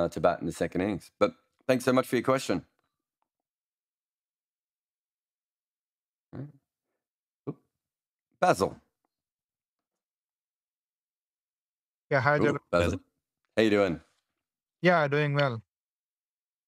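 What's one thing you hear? A man speaks calmly into a close microphone, in short bursts with pauses.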